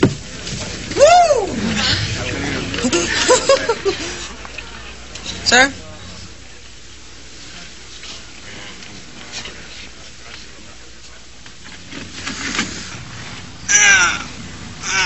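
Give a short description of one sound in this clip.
A crowd of men and women shouts and whoops excitedly nearby.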